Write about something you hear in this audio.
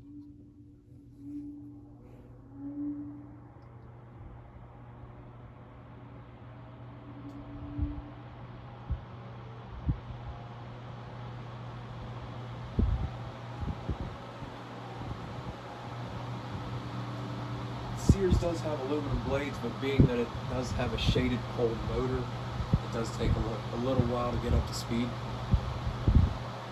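Electric fans whir steadily, slowly growing louder.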